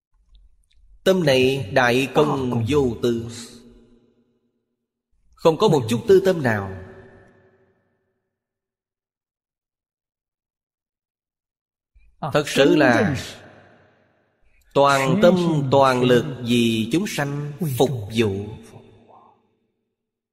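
An elderly man speaks calmly and warmly into a close microphone, in short phrases with pauses.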